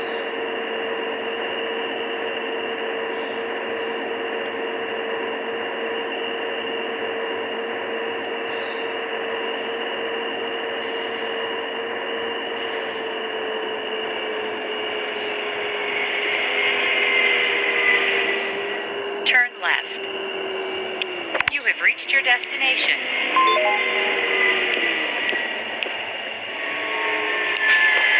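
A bus engine hums steadily, its pitch slowly dropping as the bus slows.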